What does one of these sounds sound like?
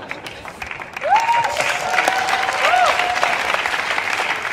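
People in an audience whistle shrilly.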